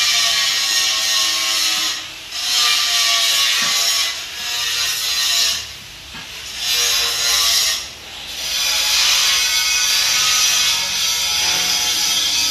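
A metal lathe cutter scrapes and screeches loudly against steel, in bursts.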